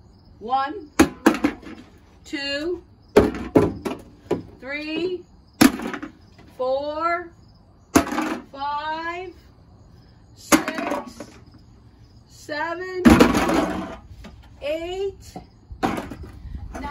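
Plastic bottles and cans clatter into a plastic tub.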